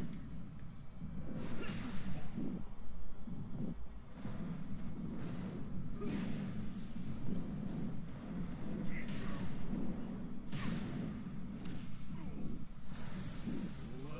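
Blows and crashes sound from a fighting game.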